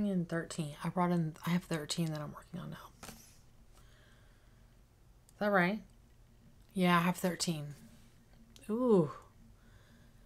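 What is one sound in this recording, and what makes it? A middle-aged woman talks expressively, close to a microphone, with pauses.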